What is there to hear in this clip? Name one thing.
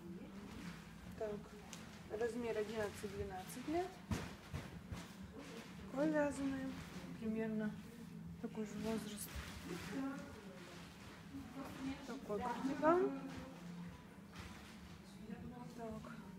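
Soft fabric rustles as knitted sweaters are handled and smoothed flat.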